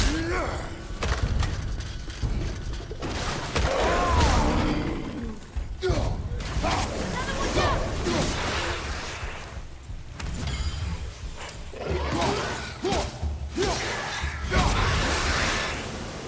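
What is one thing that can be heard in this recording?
Heavy blows thud and crack in a fight.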